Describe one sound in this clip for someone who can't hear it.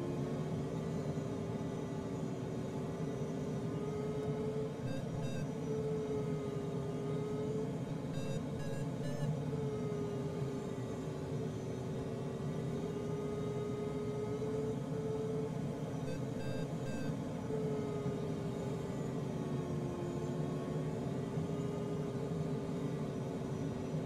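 A glider's variometer hums a steady tone that slowly wavers in pitch.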